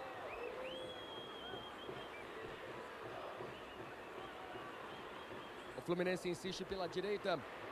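A large stadium crowd roars and whistles steadily.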